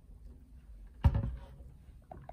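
A bottle is set down on a table with a thud.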